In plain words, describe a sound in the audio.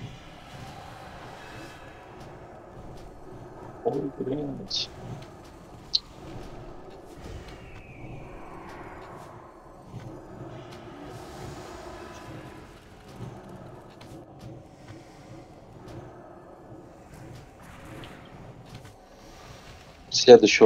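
Video game spell and combat effects crackle and burst.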